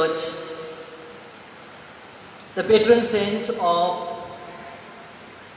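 A man chants in a sung voice through a microphone, echoing in a large hall.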